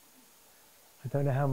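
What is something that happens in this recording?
A man speaks calmly and briefly.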